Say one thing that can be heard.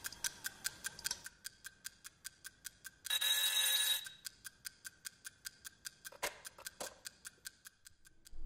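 A clock ticks steadily.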